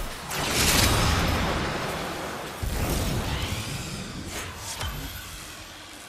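Electric energy crackles and zaps in bursts.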